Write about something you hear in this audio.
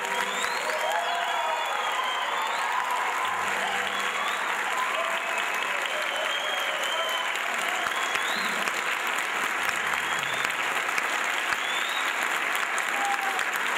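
A large audience claps and cheers in a big hall.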